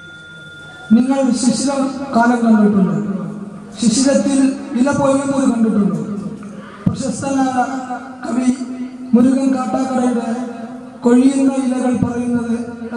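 A young man chants loudly through a microphone, echoing in a hall.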